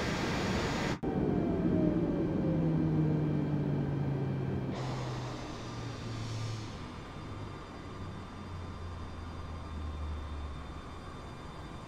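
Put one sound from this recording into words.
A jet engine's whine winds down in pitch.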